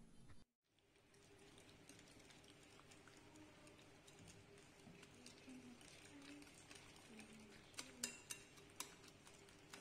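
A whisk clinks and sloshes through egg in a bowl.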